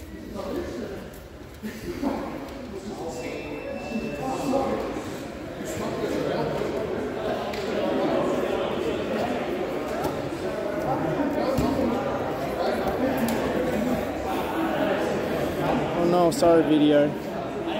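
Bodies thud and scuffle on gym mats.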